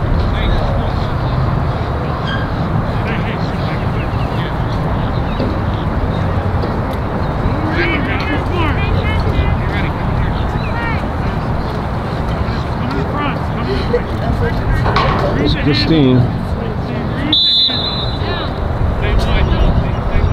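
Wind blows across an open field outdoors.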